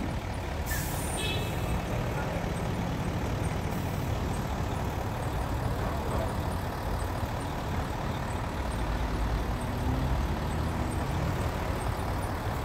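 Heavy trucks rumble past close by, engines droning low and steady.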